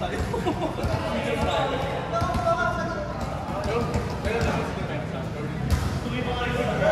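Several young people call out and chatter in a large echoing hall.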